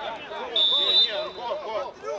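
A referee's whistle blows once, shrill and short.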